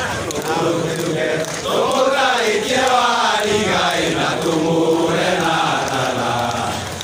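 A large crowd sings and chants loudly together outdoors.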